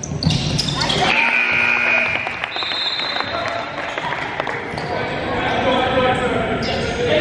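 Players and spectators shout and cheer.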